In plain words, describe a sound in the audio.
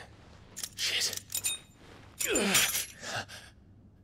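A man answers briefly.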